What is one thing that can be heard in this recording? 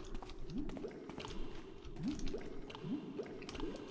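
Lava bubbles and gurgles nearby.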